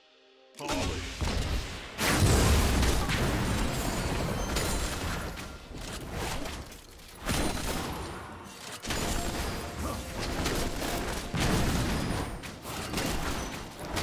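Video game weapons clash with sharp hits.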